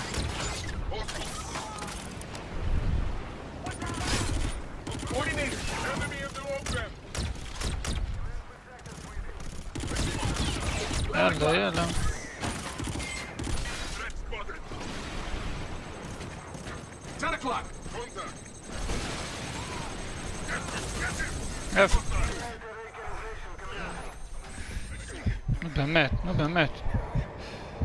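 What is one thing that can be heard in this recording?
Gunshots crack and boom in bursts.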